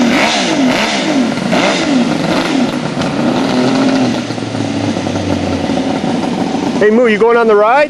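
A motorcycle engine revs loudly nearby.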